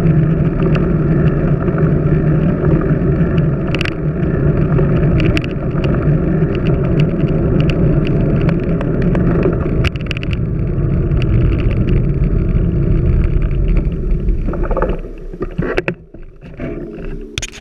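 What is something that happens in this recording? Tyres of a road bike hum and rattle on asphalt.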